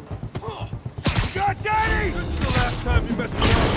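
Blows thud and whoosh in a scuffle.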